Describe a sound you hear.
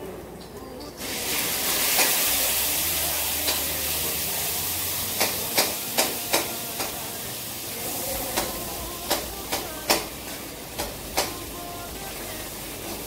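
Food sizzles and hisses in a hot pan.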